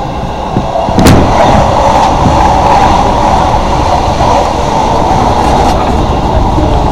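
A passing train rushes by with a loud whoosh.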